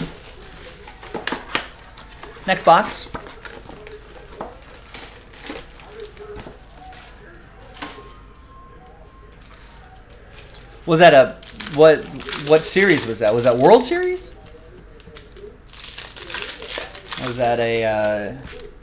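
Plastic wrapping crinkles and rips as hands tear it open.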